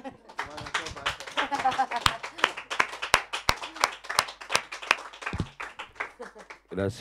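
A young woman laughs heartily close by.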